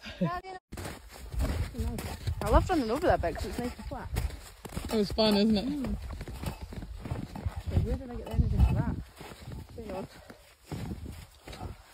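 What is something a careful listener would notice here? A metal mug clinks against a backpack with each step.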